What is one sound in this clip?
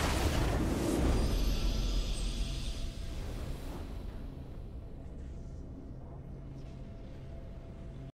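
A triumphant game fanfare swells and then fades away.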